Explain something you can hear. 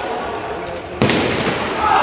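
A futsal ball is kicked in a large echoing hall.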